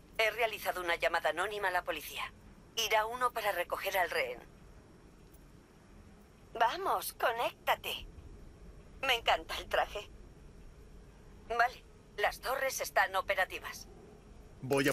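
A young woman speaks calmly through a video call.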